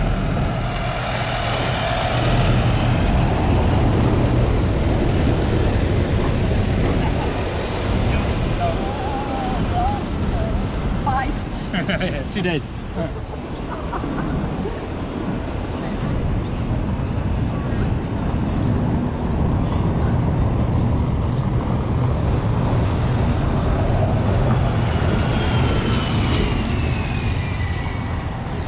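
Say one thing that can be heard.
Traffic and a crowd murmur in the open street.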